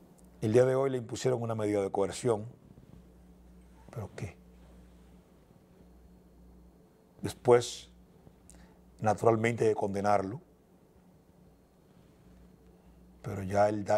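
A man speaks calmly and clearly into a close microphone, in short bursts with pauses.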